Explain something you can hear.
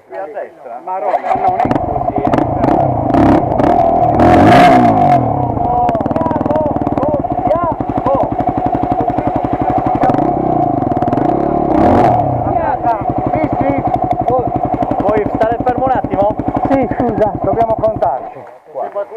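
A motorcycle engine starts up and idles roughly nearby, then cuts off.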